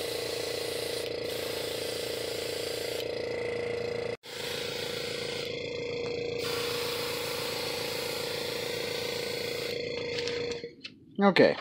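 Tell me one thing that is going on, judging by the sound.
An airbrush hisses steadily, spraying paint.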